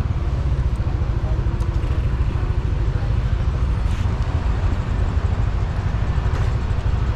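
A motorbike engine idles with a low, steady rumble.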